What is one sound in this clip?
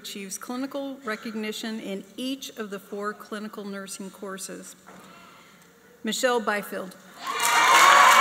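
A woman speaks clearly into a microphone in a large echoing hall.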